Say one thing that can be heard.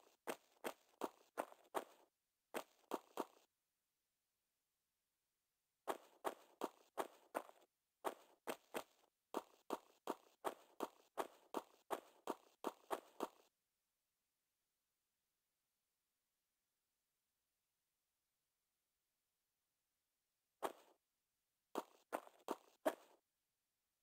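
Footsteps run quickly on hard stone, with a light echo.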